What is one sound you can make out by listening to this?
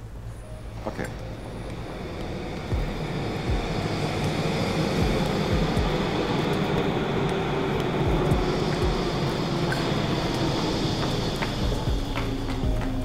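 A train rumbles in an echoing underground space, growing louder.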